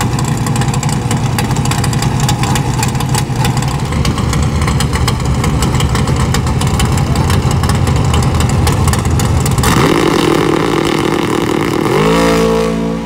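A drag racing car's engine roars loudly and steadily.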